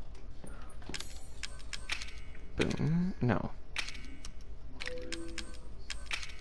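Short soft clicks tick as menu items are picked.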